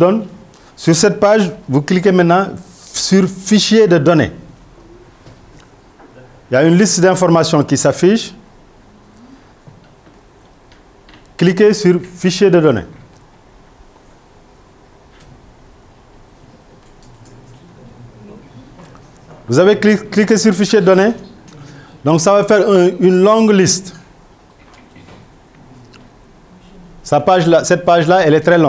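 A man lectures calmly into a microphone, in bursts with pauses.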